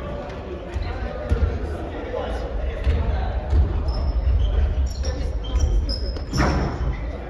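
Young men call out to each other in a large echoing hall.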